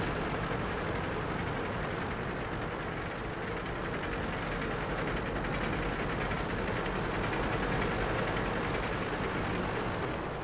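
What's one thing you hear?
Tank engines rumble and clatter steadily as the tanks drive.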